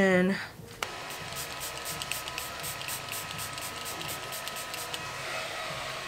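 A spray bottle hisses in quick bursts.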